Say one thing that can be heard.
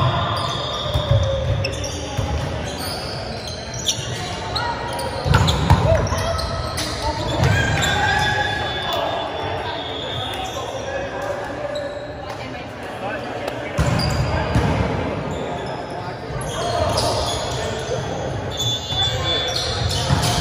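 Volleyballs thump as players hit them, echoing in a large hall.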